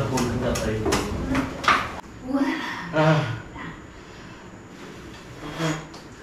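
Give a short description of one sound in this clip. Men and women talk casually nearby, in short bursts.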